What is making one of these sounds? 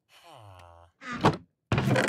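A wooden chest lid thumps shut.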